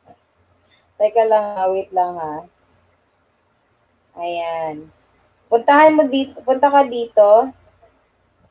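A young woman sings in short phrases close to a microphone.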